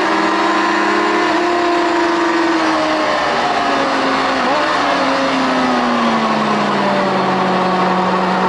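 Racing motorcycle engines roar loudly at high speed, their pitch slowly falling.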